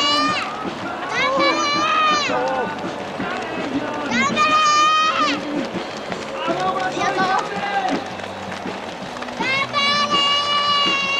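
Many running feet patter on a paved road.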